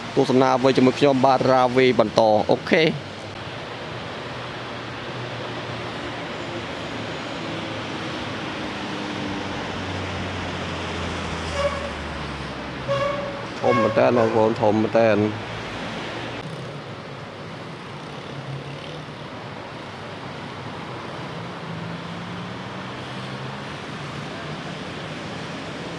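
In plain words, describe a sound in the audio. Traffic rumbles steadily along a busy road.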